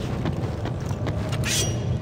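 Quick footsteps run across a hard stone floor.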